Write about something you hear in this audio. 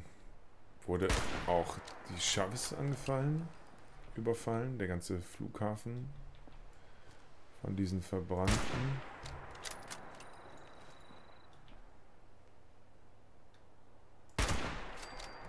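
A pump-action shotgun fires loud booming shots.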